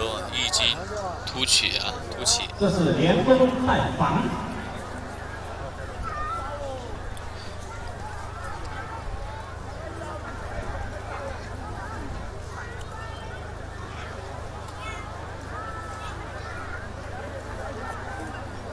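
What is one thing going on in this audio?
Two water buffalo bulls grind and knock their horns together.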